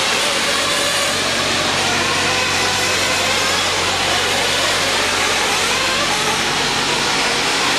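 Small electric model cars whine loudly as they race over a dirt track.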